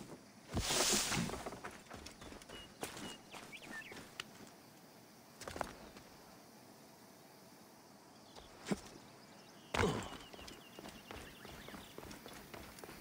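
Footsteps scuff and crunch over dry straw and rock.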